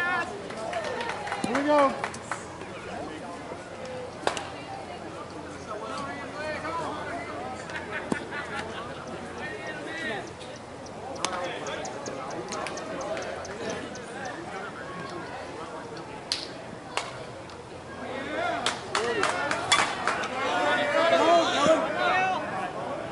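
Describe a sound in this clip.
Men call out and chatter across an open field.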